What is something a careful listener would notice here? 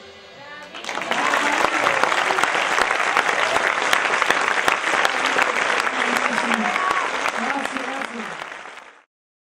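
Members of an audience cheer and whoop.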